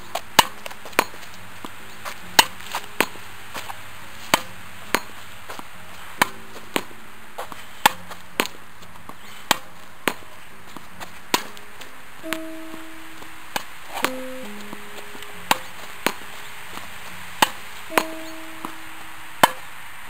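A tennis ball bounces off a concrete wall.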